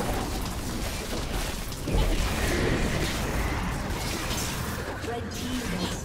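Spells and attacks clash and crackle in a game battle.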